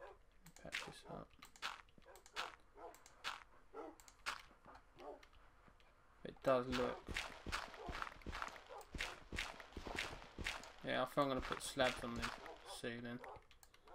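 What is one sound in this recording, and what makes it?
Footsteps crunch on dirt at a steady pace.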